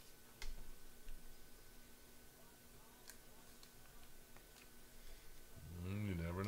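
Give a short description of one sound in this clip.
Trading cards rustle and click as hands shuffle through them.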